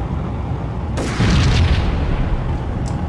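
Gunfire and a loud explosion burst out.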